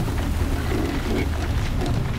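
Mechanical creatures growl and clank nearby.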